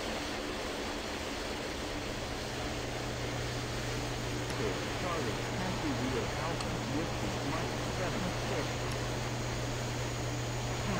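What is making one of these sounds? A jet engine hums steadily as an airliner taxis.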